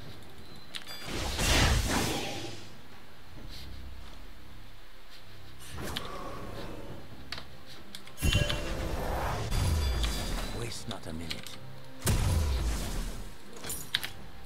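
Game spell effects whoosh and burst loudly.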